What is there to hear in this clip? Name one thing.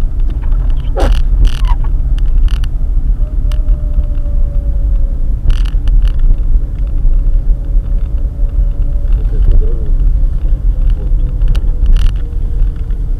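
Small knocks and rattles sound inside the car now and then.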